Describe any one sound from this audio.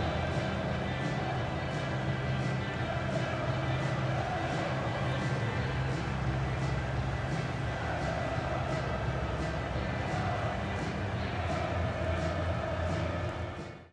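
A large crowd claps in a steady rhythm.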